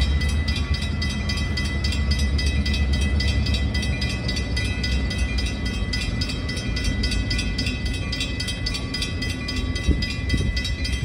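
A bell rings rapidly and steadily.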